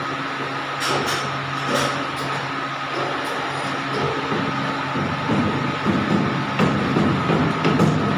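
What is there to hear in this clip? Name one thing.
Metal creaks and scrapes as a pipe bends through rollers.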